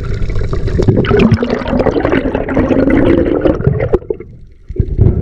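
Air bubbles burble and gurgle loudly close by underwater.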